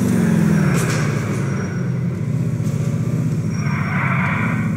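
Tyres screech as a car skids around a corner.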